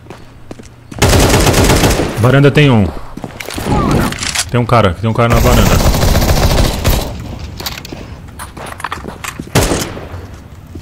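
Gunshots and explosions crack in sharp bursts.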